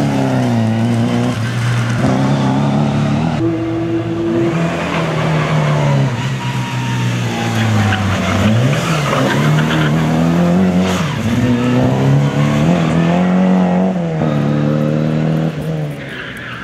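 A rally car engine revs hard and roars, rising and falling in pitch.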